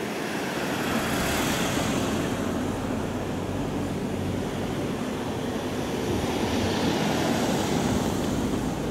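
A car's engine rumbles steadily close by.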